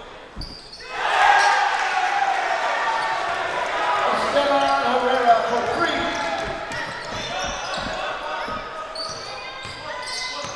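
A crowd murmurs and cheers in an echoing gym.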